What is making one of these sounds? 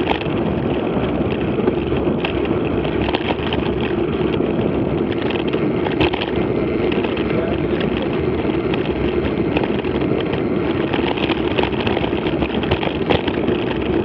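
Tyres crunch and rattle over a bumpy gravel track.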